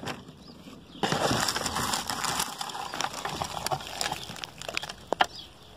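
Dry leaves rustle and crackle as a hand moves them.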